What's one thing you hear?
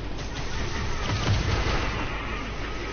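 A deep boom hits hard.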